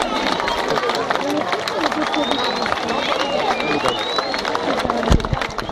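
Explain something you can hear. Fireworks crackle and pop rapidly.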